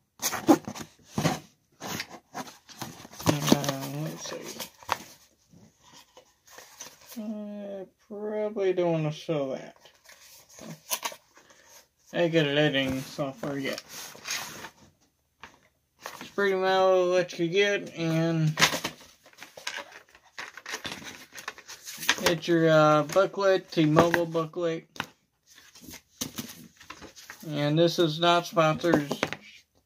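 Cardboard packaging rustles and taps in hands.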